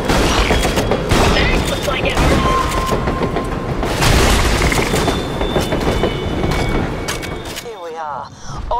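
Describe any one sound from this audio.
Gunfire bursts rapidly with loud blasts and explosions.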